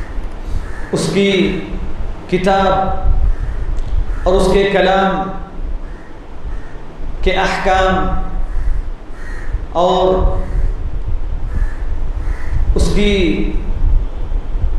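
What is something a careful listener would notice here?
A young man chants in long, melodic phrases through a microphone, with pauses between them.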